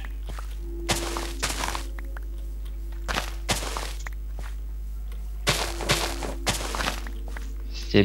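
Crops snap and rustle as they are broken in quick bursts.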